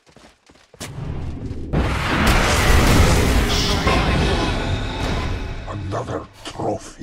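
Spell blasts and hits crash and roar in a game battle.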